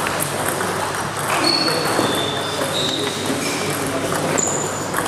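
A ping-pong ball clicks sharply against paddles and the table.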